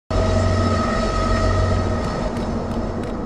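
A magical glow hums steadily and then fades.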